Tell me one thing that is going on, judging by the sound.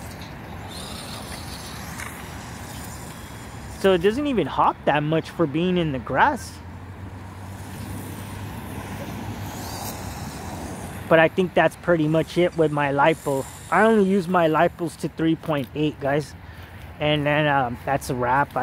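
A small toy car's electric motor whirs as it drives over grass.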